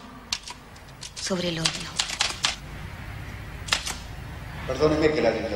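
Typewriter keys clack in quick bursts.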